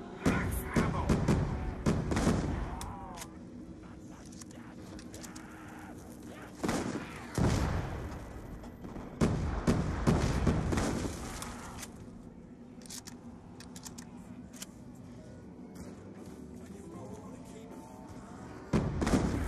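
A shotgun fires in loud bursts.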